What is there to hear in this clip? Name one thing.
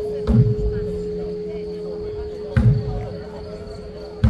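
A brass band plays outdoors.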